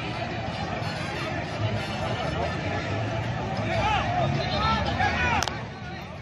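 A crowd of spectators chatters and shouts outdoors nearby.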